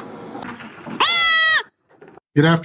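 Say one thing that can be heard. A goat bleats loudly up close.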